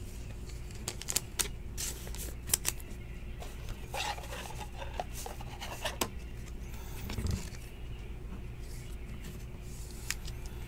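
Plastic sleeves rustle and crinkle as cards are handled.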